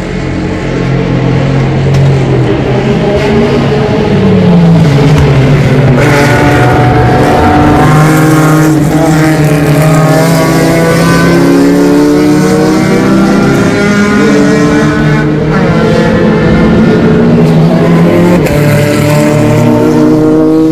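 Racing car engines roar and drone loudly as cars drive around a track, rising and falling in pitch.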